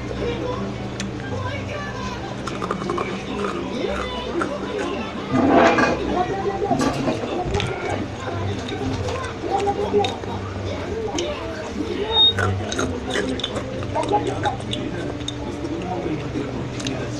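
A young girl whispers softly, very close to a microphone.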